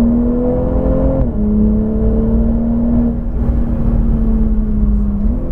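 Wind and road noise rush past a moving car.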